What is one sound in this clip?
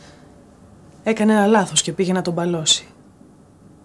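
A young woman speaks calmly at close range.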